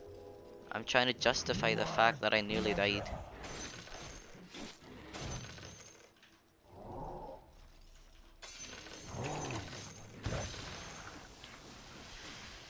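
Weapons clash and thud in a video game battle.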